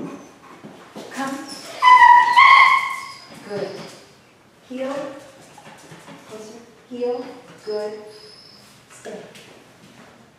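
A woman speaks to a dog in an upbeat, coaxing voice nearby.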